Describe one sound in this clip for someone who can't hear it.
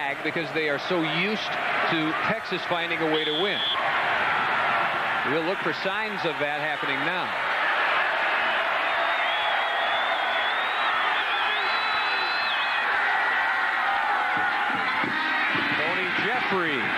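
A large crowd roars and cheers throughout.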